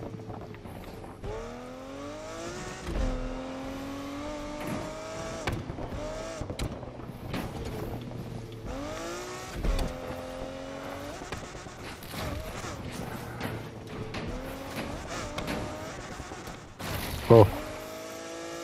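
A racing car engine roars, revving up and dropping with each gear change.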